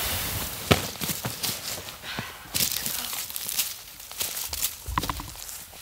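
Fabric rustles and flaps as a tent is handled.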